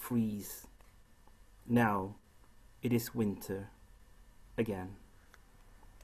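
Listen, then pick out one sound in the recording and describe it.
A woman speaks in short bursts through an online call.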